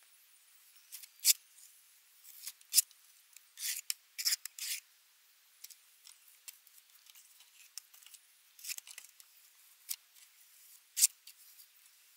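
A trowel scrapes and slaps wet cement.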